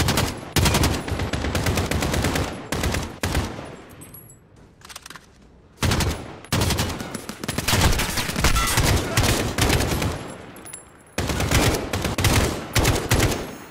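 A rifle fires rapid bursts of gunshots nearby.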